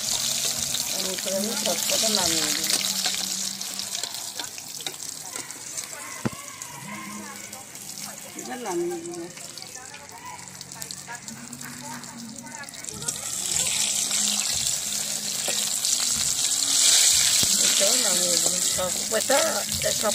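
A metal spatula scrapes and clinks against the pan.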